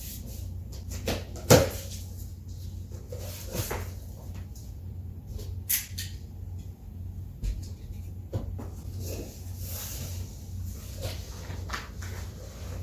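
Cardboard flaps rustle and thump as a box is opened.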